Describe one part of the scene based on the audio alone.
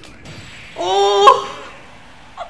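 A man shouts out loudly with excitement close to a microphone.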